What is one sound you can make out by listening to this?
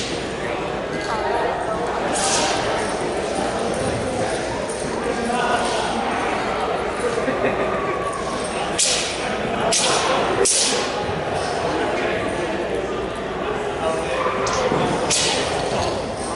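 Feet thud and slap on a padded mat.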